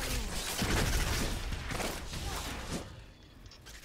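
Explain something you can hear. Magic blasts crackle and burst in a rapid fight.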